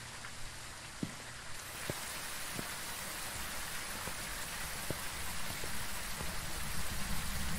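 Footsteps tread steadily on hard pavement.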